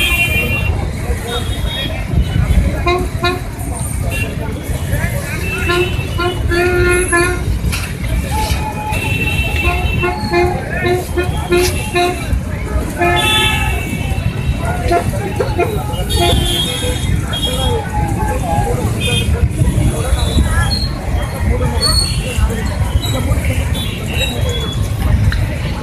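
A crowd of people chatters and calls out outdoors at a distance.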